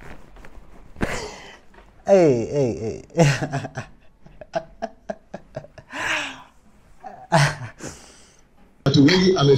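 A young man laughs loudly and heartily close by.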